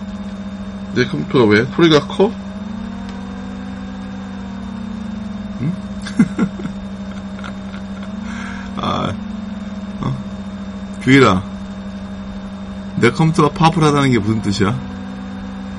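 A man speaks calmly through a microphone, in short bursts with pauses.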